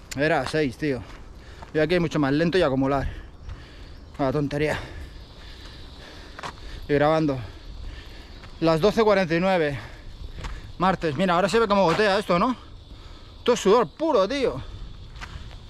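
A man speaks close by in short bursts, a little out of breath.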